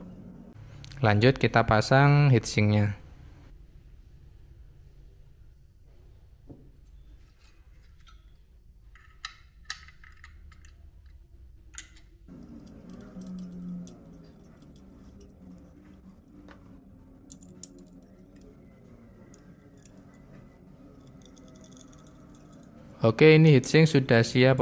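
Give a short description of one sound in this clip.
Small metal parts clink and tap as they are handled.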